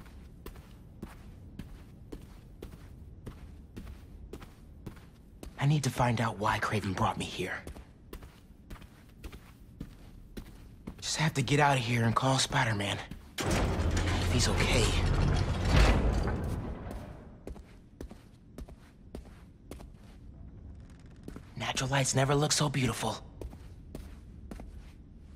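Soft footsteps tap steadily on a wooden floor.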